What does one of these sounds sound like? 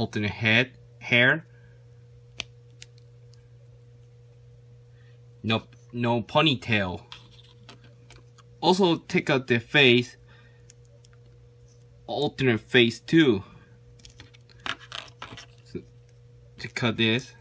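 Small plastic parts click and snap softly.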